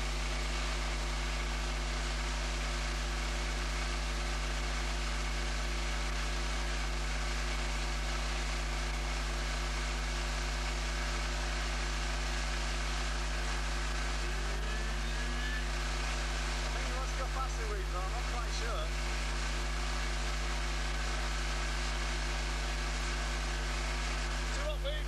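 Water churns and rushes in a boat's wake.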